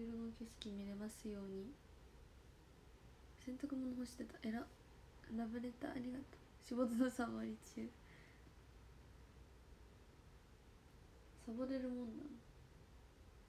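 A young woman talks softly and casually, close by.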